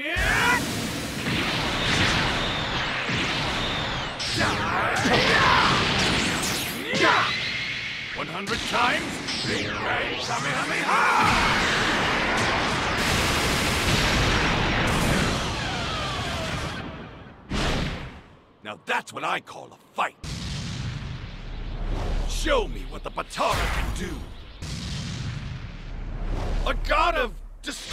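Energy blasts roar and crackle loudly.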